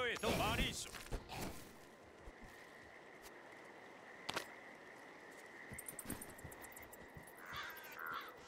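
Footsteps tread steadily on stone and earth.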